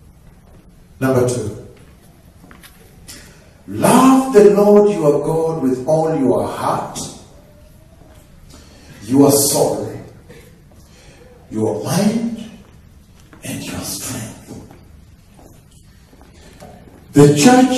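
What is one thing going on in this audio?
A man preaches loudly and with fervour into a microphone, in bursts, in an echoing room.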